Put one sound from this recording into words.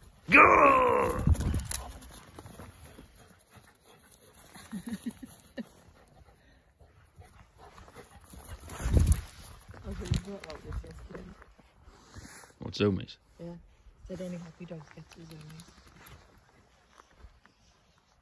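A dog's paws thud softly on grass as it runs.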